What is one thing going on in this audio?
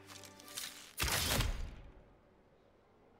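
Arrows thud into a target.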